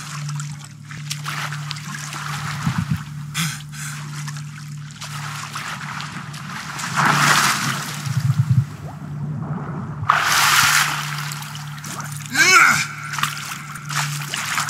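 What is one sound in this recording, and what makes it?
Water splashes and swirls as a swimmer moves through it.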